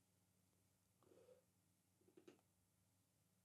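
A man speaks briefly into a microphone, close by.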